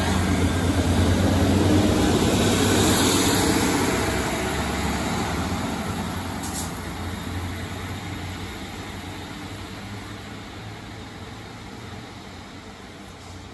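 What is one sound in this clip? A diesel train rumbles past close by and fades into the distance.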